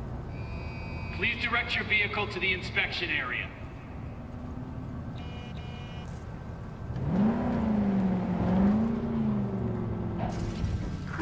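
A car engine rumbles and revs as a car drives slowly.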